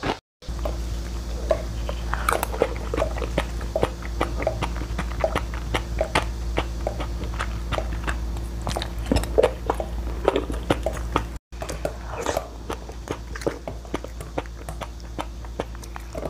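A young woman crunches ice while chewing close by.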